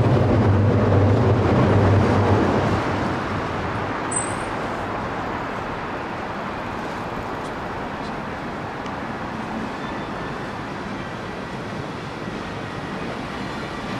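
City traffic hums steadily in the distance.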